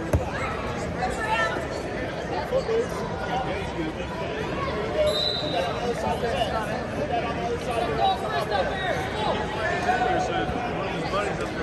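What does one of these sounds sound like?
Many voices of a crowd murmur and call out in a large echoing hall.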